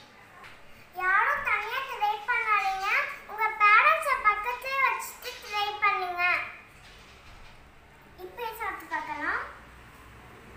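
A young girl speaks close by with animation.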